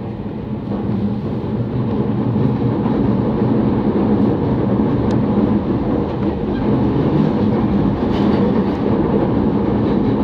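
An electric commuter train rumbles along the track at speed, heard from inside the carriage.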